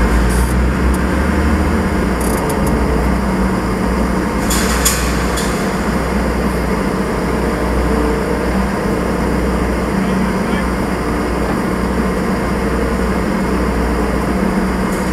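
A diesel engine rumbles steadily up close.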